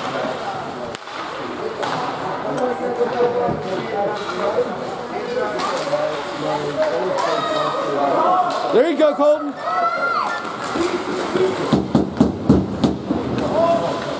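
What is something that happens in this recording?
Spectators talk and cheer in a large echoing rink.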